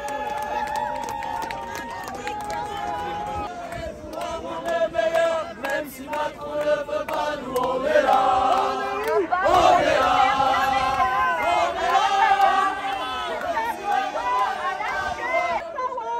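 A large crowd of men and women sings loudly together outdoors.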